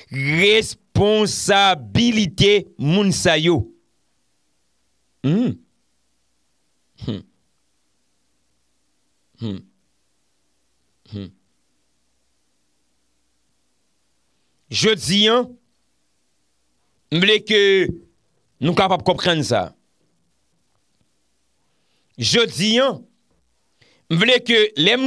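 A young man speaks close into a microphone, with animation and long pauses.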